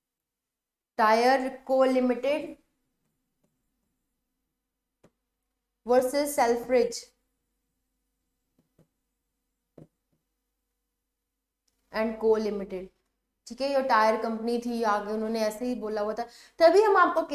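A young woman explains with animation, close to a microphone, pausing between phrases.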